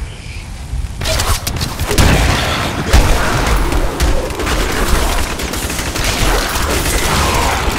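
Weapons clash and thud.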